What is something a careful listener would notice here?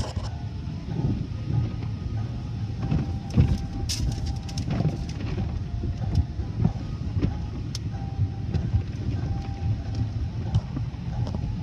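Car wash brushes slap and thump against a car's windshield.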